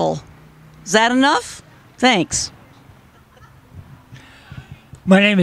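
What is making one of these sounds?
A man speaks loudly outdoors.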